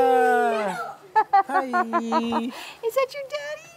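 A toddler giggles and laughs up close.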